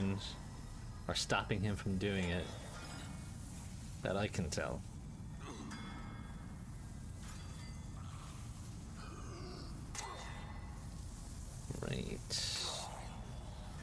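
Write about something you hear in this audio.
A man talks casually into a close microphone, in short bursts.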